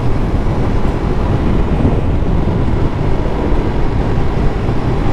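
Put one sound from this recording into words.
A motorcycle engine hums steadily while riding at speed.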